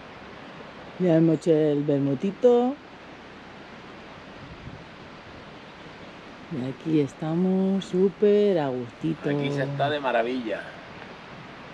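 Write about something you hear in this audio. A middle-aged man speaks calmly close by, outdoors.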